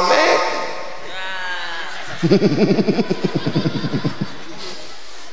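A young man speaks with animation into a microphone through loudspeakers.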